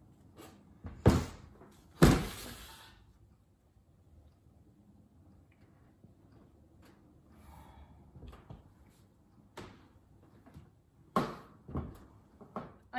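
Blocks of soap thud down onto a metal tray.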